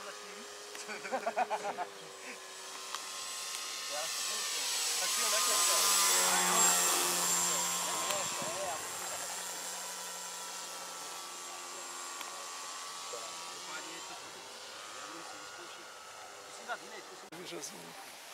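A model plane's engine buzzes overhead, growing louder as it passes close and then fading into the distance.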